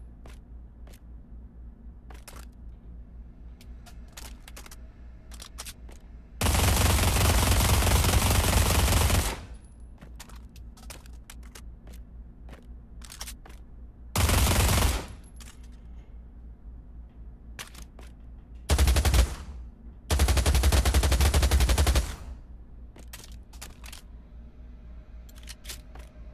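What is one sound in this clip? Gun parts click and clack as a weapon is handled.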